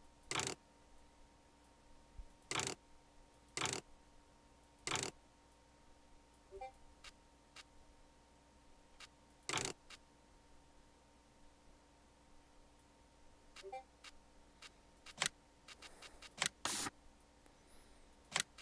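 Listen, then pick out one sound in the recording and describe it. Short clicks sound as a menu is operated.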